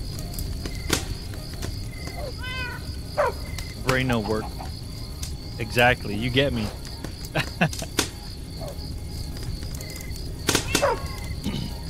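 A fire crackles softly in a furnace.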